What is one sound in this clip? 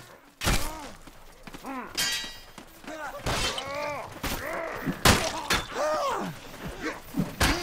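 Swords clang and clash with sharp metallic hits.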